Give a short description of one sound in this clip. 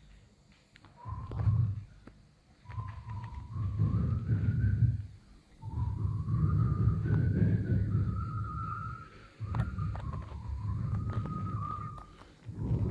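An elderly man sings slowly in a low voice through a microphone.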